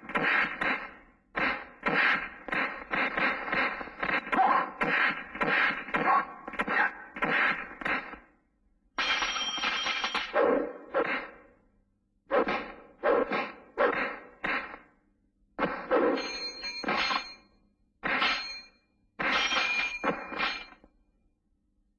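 Blows land with loud smacks and thuds.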